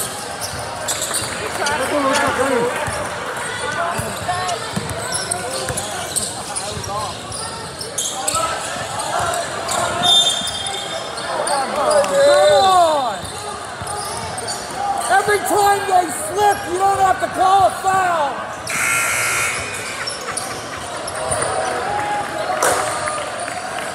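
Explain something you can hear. Spectators chatter and call out in the background.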